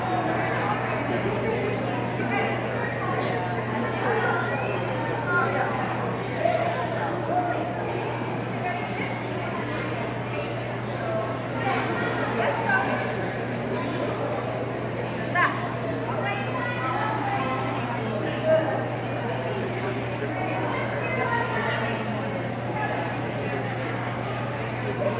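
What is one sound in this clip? A woman speaks to a dog in an encouraging voice, echoing in a large hall.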